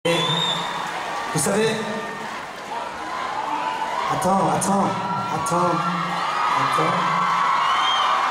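A man speaks into a microphone through a loudspeaker system in a large hall.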